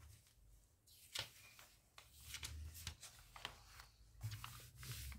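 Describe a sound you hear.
Glossy paper pages rustle and flap as a page is turned.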